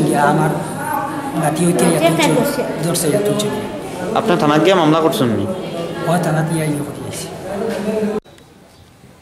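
An elderly man speaks with agitation close to a microphone.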